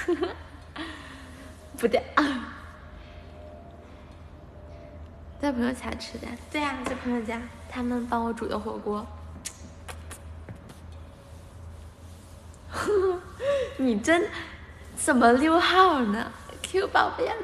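A young woman laughs brightly and close up.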